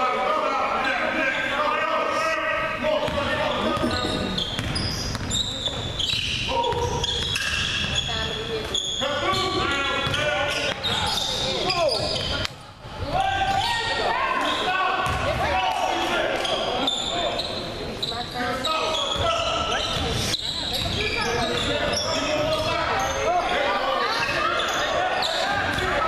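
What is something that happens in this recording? Young men call out to each other across the hall.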